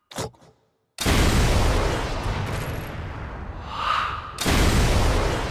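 A rifle fires with a loud boom.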